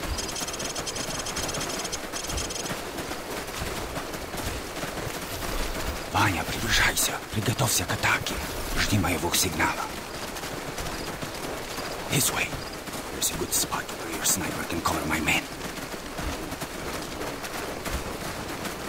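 Boots run through grass and over gravel.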